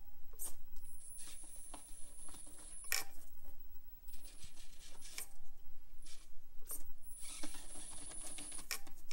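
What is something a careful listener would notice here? A small electric motor whines in bursts as a toy truck climbs.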